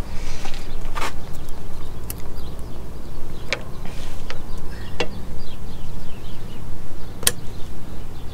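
Small metal parts click and tap in a man's hands.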